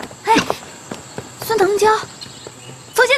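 A young woman speaks in alarm, close by.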